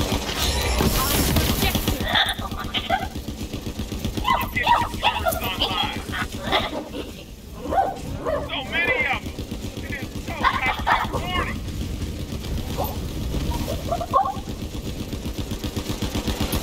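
A rapid-fire gun shoots in quick bursts.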